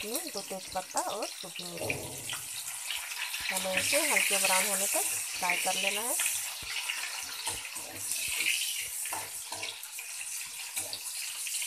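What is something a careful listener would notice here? Oil sizzles and crackles in a hot pan.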